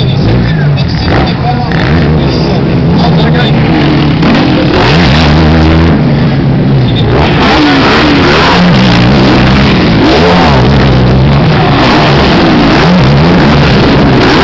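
Quad bike engines rev loudly nearby, rising and falling in pitch.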